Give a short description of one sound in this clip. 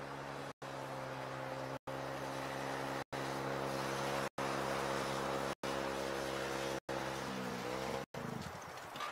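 A motorcycle engine hums steadily as it rides past, then its pitch drops.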